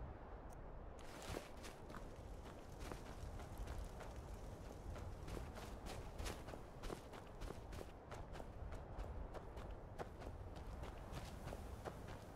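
Footsteps crunch steadily through grass and snow.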